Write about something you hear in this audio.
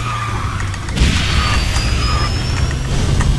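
A racing game's speed boost whooshes loudly.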